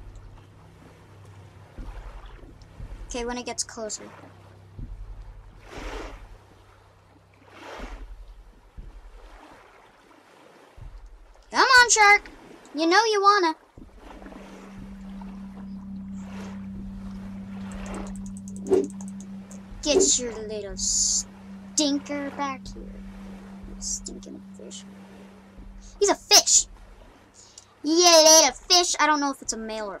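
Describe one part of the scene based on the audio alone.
Gentle waves lap softly against a sandy shore.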